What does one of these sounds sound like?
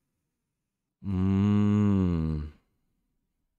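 A young man hums a drawn-out sound close to a microphone.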